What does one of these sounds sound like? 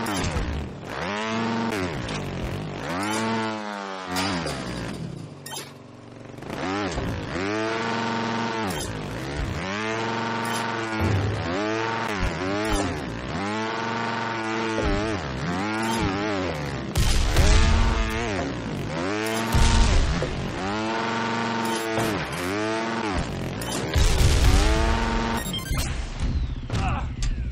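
A motorbike engine revs up and down again and again.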